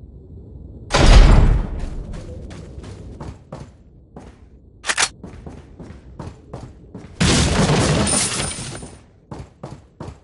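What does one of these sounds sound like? A pistol fires loud gunshots.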